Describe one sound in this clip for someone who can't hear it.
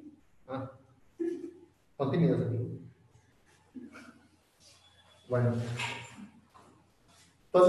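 A young man speaks calmly, heard through an online call.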